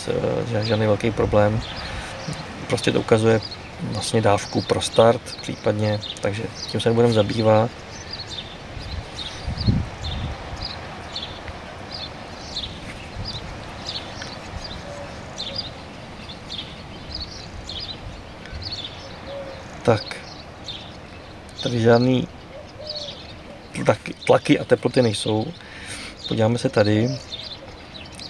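An elderly man talks calmly into a microphone, close by.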